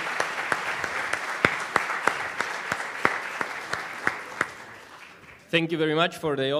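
An audience applauds in a large hall, and the applause slowly fades.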